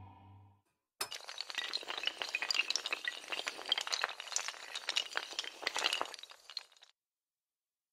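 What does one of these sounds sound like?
Dominoes clatter rapidly as they topple in a long chain.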